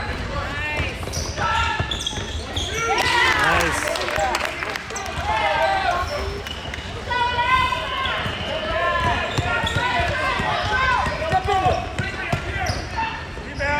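A basketball bounces on a hardwood floor in a large echoing gym.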